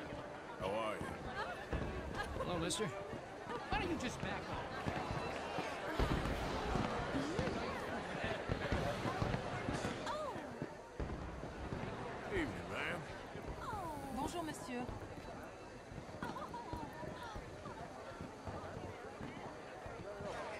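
A crowd of men and women chatter at a lively party outdoors.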